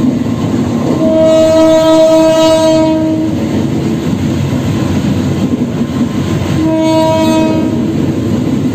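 A train horn blows loudly in two long blasts.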